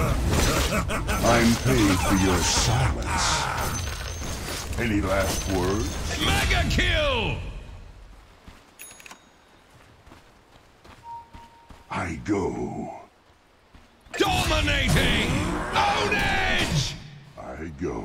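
Weapons clash and spells burst in a fight.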